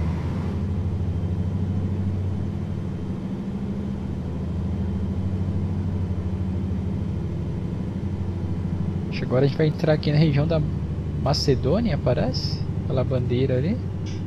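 A truck engine hums steadily at low revs.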